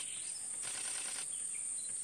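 An elephant splashes water with its trunk at a distance.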